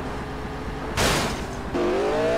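A car crashes with a thud.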